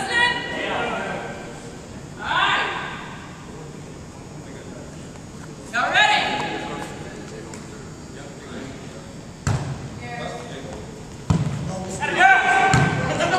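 Young women shout and call out in a large echoing hall.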